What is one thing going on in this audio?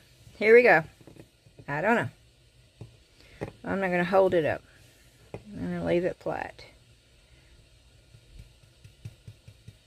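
A stiff brush dabs and scrapes softly on paper.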